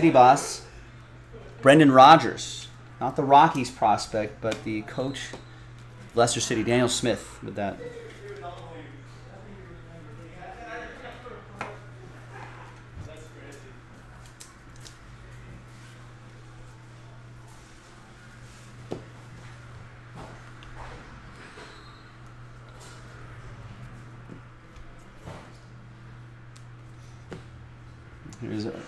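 Trading cards slide and flick against each other in hands.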